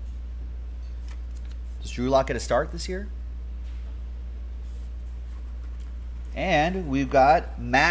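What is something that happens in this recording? Cardboard packaging rustles and scrapes as it is handled.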